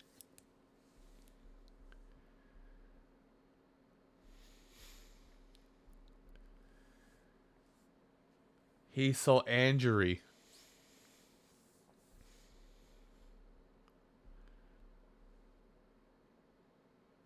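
A man speaks quietly and casually into a microphone.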